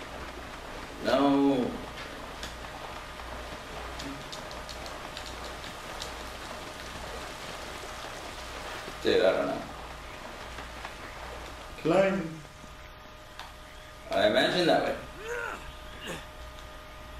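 A young man speaks in short bursts into a headset microphone.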